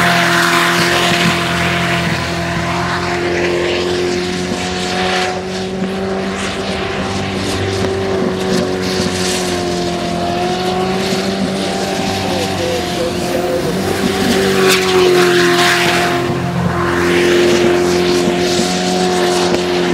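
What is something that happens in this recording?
A jet boat engine roars loudly at high revs.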